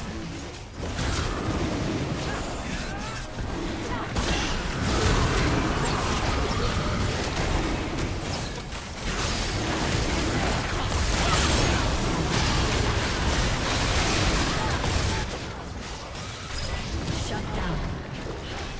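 Game spells and blows crackle and boom in a busy battle.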